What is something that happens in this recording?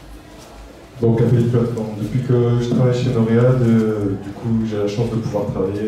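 A second man speaks loudly through a microphone.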